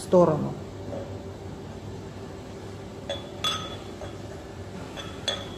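Glassware clinks lightly as it is handled.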